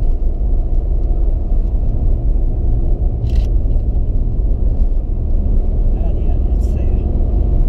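Tyres rumble on a wet road.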